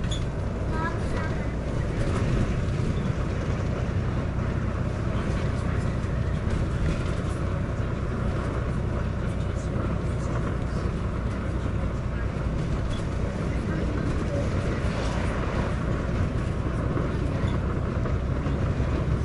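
A bus engine rumbles steadily while driving along a road.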